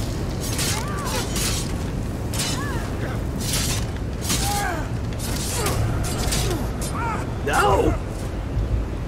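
Swords clash and strike with sharp metallic blows.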